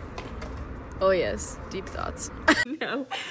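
A young woman speaks close up.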